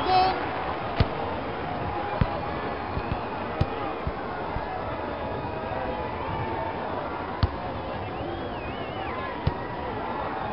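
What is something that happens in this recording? A soccer ball is kicked with dull thumps.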